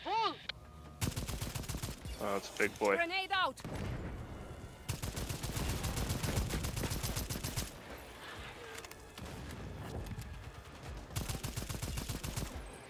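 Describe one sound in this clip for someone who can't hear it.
An automatic rifle fires in rapid bursts.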